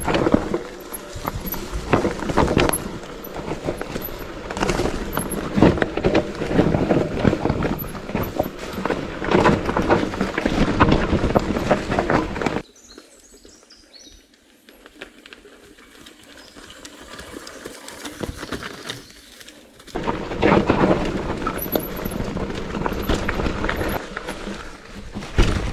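Tyres crunch over dirt and stones up close.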